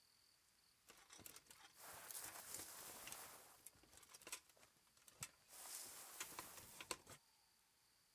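Footsteps rustle through dry undergrowth.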